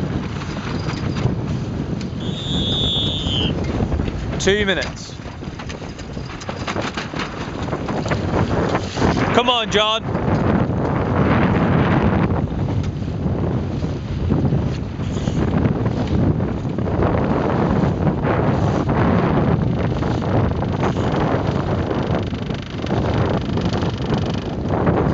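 Choppy water splashes and laps against a small boat's hull.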